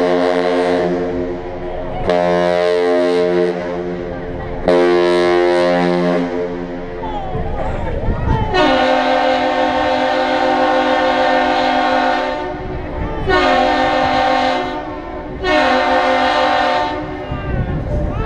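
A ship's horn sounds loud, deep blasts, long and short, nearby.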